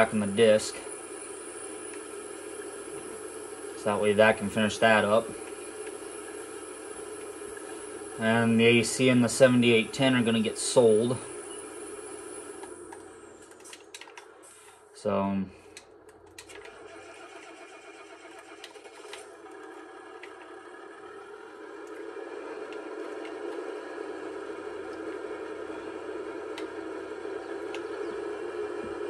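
A tractor engine hums steadily through a television speaker.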